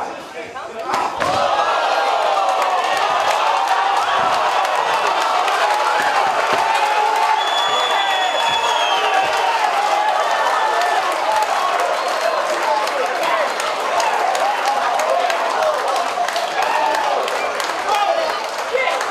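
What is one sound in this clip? A crowd cheers and shouts loudly in an echoing hall.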